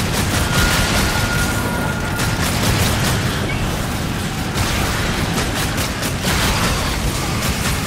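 Debris bursts and scatters with loud crashes.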